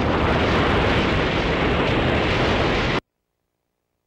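A loud explosion roars and crackles in a video game.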